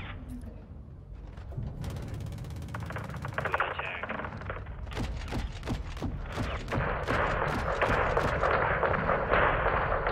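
Explosions boom and gunfire cracks in a video game.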